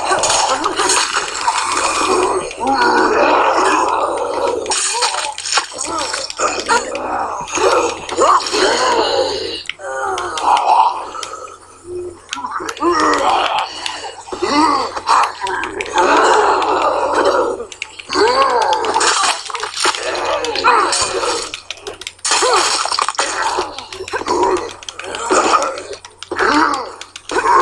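Heavy blows thud repeatedly against bodies.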